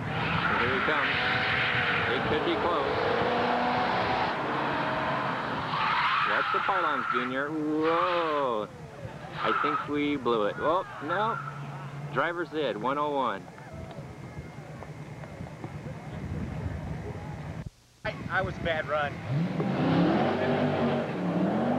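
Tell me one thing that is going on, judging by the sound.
Car tyres squeal on pavement.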